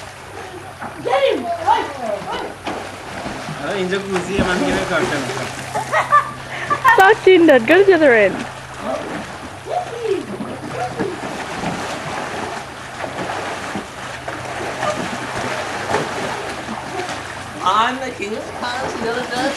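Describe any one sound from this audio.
Young people shout and laugh excitedly outdoors.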